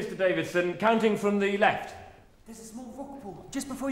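A young man speaks urgently, close by.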